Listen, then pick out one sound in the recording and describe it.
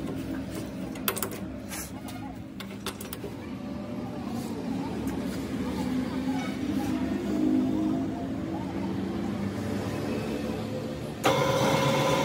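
A heavy metal part clunks against a lathe chuck.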